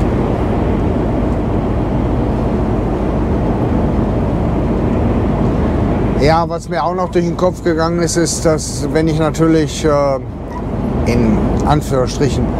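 A truck engine hums steadily with road rumble from inside the cab.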